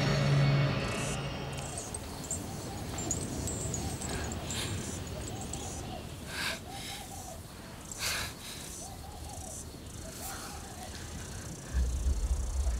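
A woman speaks softly and tenderly nearby.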